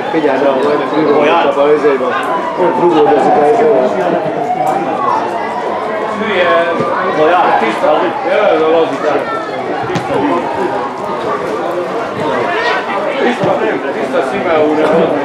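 Football players shout to each other across an open pitch.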